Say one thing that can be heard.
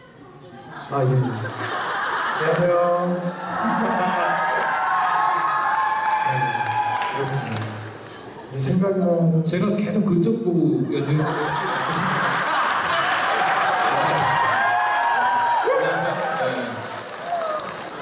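A crowd of young women screams and cheers loudly.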